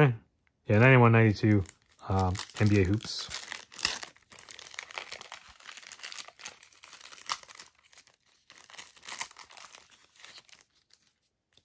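A plastic wrapper crinkles and rustles as it is opened.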